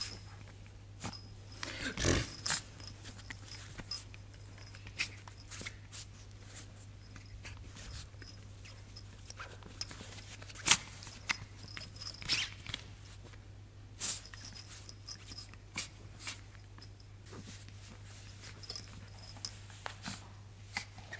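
A small dog shifts about in a soft bed.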